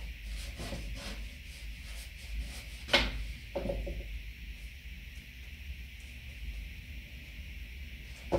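A brush scrapes and dabs on a canvas.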